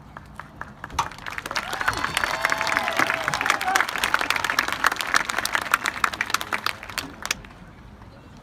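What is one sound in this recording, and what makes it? A marching band plays with loud drums outdoors.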